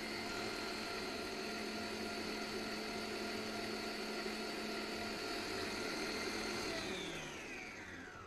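A stand mixer whirs steadily, then winds down.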